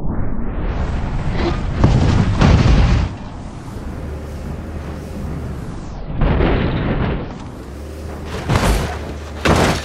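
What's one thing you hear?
A car crashes and tumbles with loud metal bangs and scraping.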